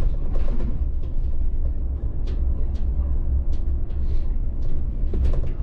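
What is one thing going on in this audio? The bus rattles and clicks softly as it drives over the street.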